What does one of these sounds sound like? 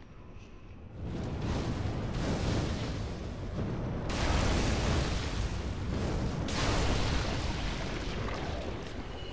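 Fire bursts with a loud roaring whoosh.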